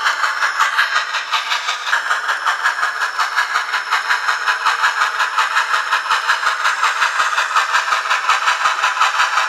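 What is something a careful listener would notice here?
A model steam locomotive chuffs in a steady, quick rhythm.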